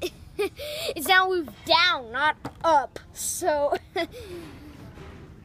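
A young child talks excitedly and close by.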